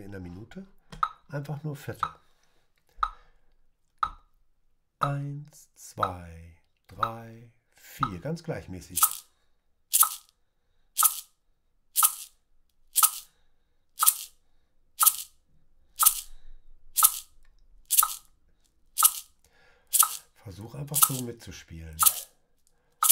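A shaker rattles in short, sharp shakes, about once a second.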